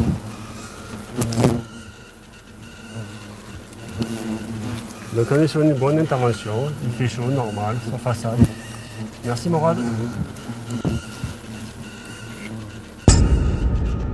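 Hornets buzz around a nest.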